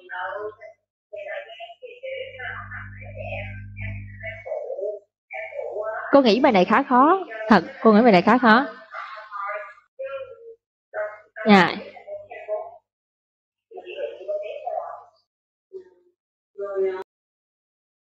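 A woman speaks through an online call, explaining with animation.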